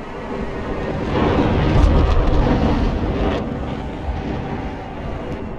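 A loud blast booms and rolls away.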